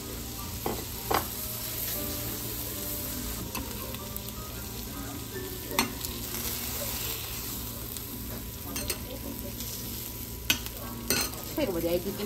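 A metal spatula scrapes and taps against a griddle.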